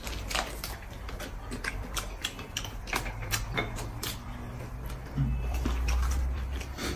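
A young woman chews and slurps food noisily up close.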